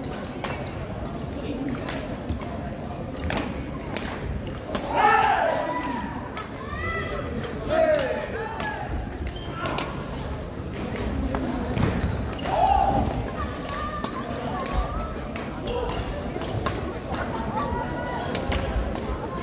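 Badminton rackets strike a shuttlecock in a rally, in a large echoing hall.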